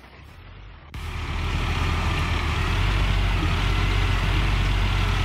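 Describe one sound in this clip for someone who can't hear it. An excavator engine roars loudly.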